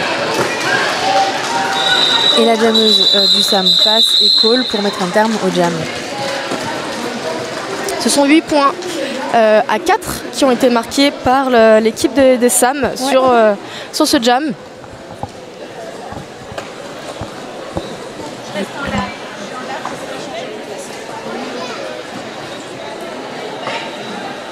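Roller skates roll and scrape on a wooden floor in a large echoing hall.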